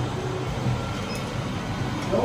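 A lift button clicks as it is pressed.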